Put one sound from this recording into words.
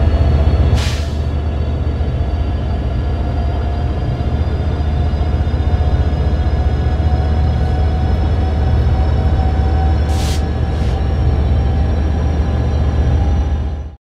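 A truck engine rumbles steadily, its pitch rising slowly as it speeds up.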